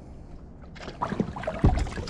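Water rushes past a speeding boat's hull.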